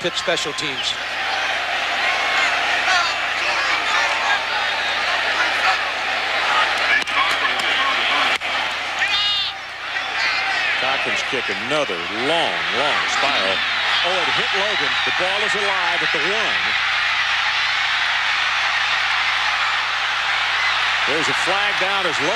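A large stadium crowd roars and cheers throughout.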